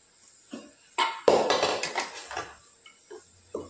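A metal pot clatters against a stove.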